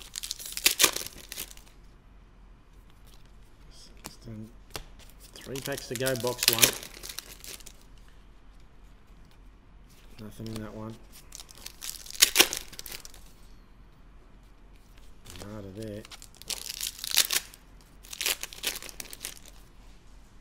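Foil card packets crinkle and rustle in hands.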